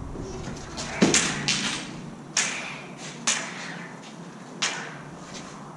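Toy light swords clash with sharp buzzing hits that echo around a large bare room.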